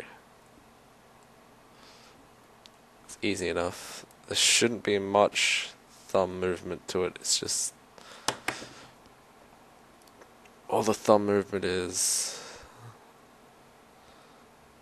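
A pen taps and clicks softly against fingers as it is spun.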